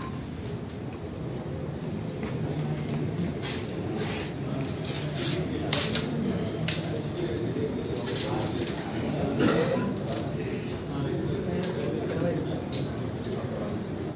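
Several men talk at once in a low murmur.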